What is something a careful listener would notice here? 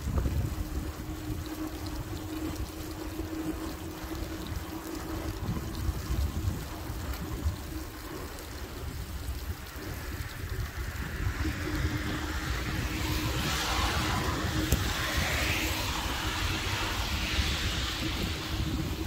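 Tyres hiss on a wet road, growing louder partway through.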